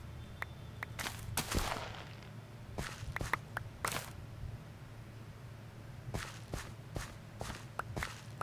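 Crops are pulled up with short crunchy pops.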